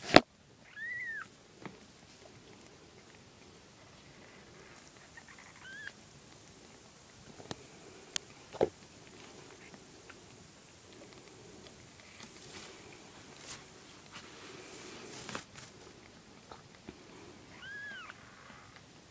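A kitten mews faintly a few times.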